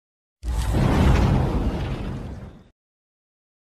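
A burst of flame whooshes and fades away.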